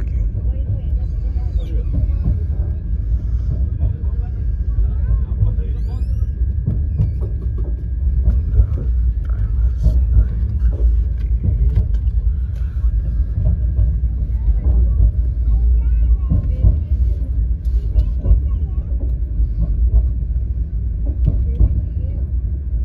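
Wheels clatter and knock over rail joints.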